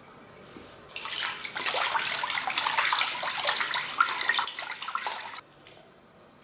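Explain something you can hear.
A hand swishes and sloshes liquid in a metal bowl.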